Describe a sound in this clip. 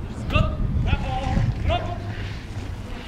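A man shouts a loud command outdoors.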